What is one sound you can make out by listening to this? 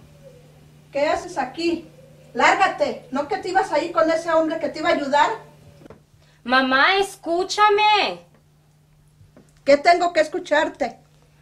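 A middle-aged woman speaks sharply and with animation.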